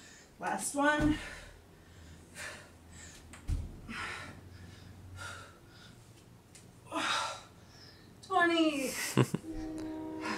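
Feet thump on the floor as a woman jumps.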